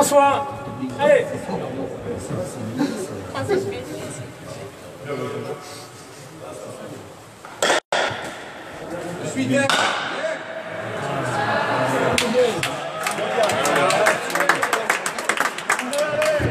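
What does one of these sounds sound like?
A ball cracks off a wooden paddle in an echoing hall.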